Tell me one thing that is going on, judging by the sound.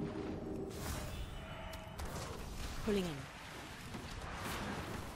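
Game spell effects whoosh and chime in bursts.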